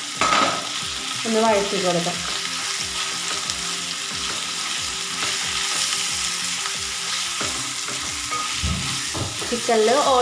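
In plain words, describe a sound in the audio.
A metal spatula scrapes and stirs meat in a pan.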